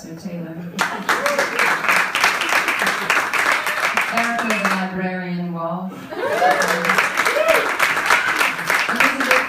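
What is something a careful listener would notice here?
A drummer plays a lively beat on a drum kit with cymbals.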